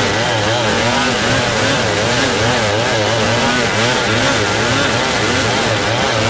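A two-stroke chainsaw screams under load, ripping lengthwise through a hardwood log.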